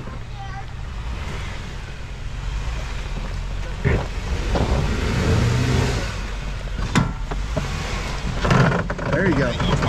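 Tyres crunch over dirt and rocks.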